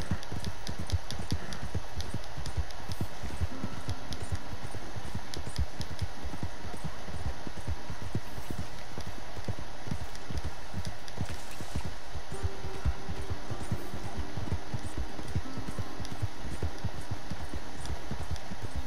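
Horse hooves thud quickly on soft ground at a gallop.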